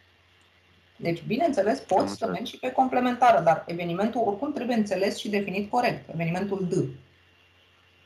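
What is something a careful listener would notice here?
A woman explains calmly over an online call.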